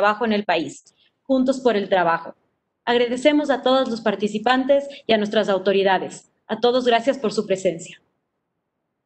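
A young woman talks calmly through an online call, in short phrases.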